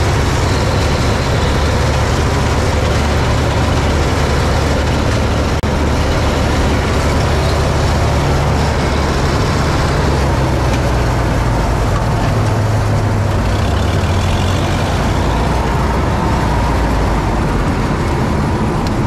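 A combine harvester's engine roars loudly and steadily from close by.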